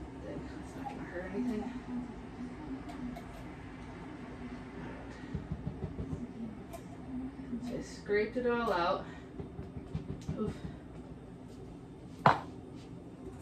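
Dishes and utensils clatter and knock on a counter.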